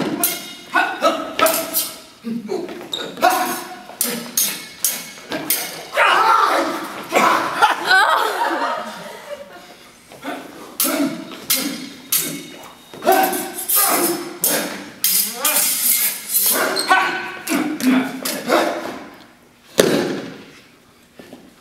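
Metal swords clash and ring in quick bursts, echoing in a large hall.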